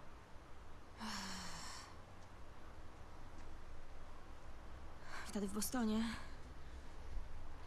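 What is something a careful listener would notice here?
A young girl speaks softly and hesitantly.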